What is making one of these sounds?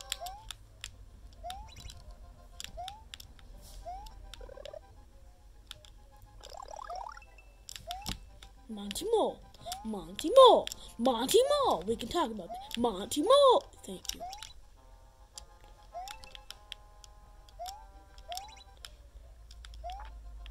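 Short rising electronic blips from a game play through a small speaker.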